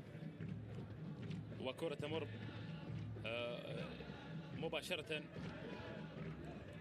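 A small crowd murmurs faintly across a large open stadium.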